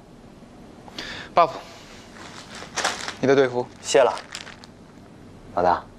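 A man speaks firmly.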